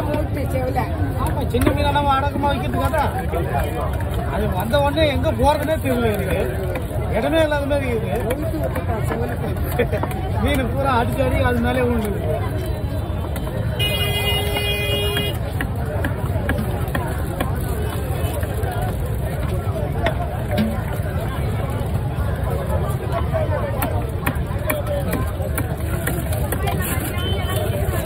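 A heavy knife chops through fish onto a wooden block with dull thuds.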